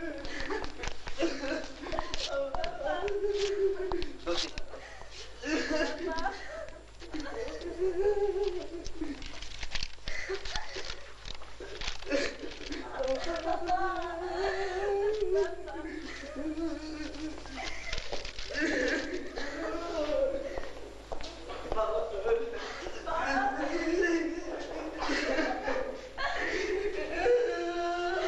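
Men talk in turn, close by, in a calm, serious way.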